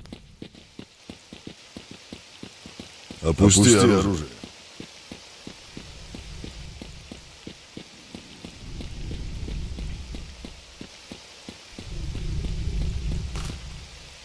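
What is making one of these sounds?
Footsteps crunch steadily on a road.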